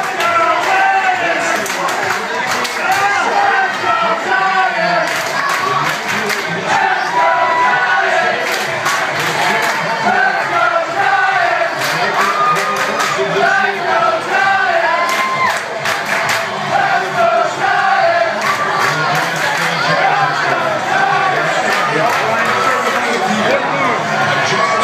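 Many voices of men and women chatter and talk over one another.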